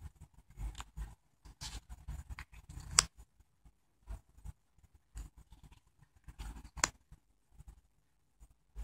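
Playing cards slide and flick as they are turned over on a soft surface.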